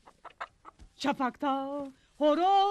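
A woman moans loudly, close by.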